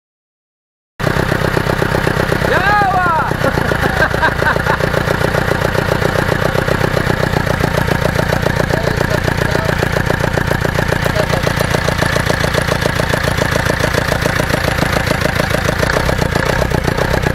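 A diesel engine idles with a fast, steady knocking clatter, close by.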